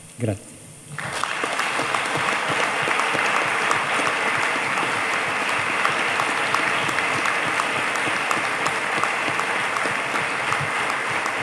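An audience applauds loudly.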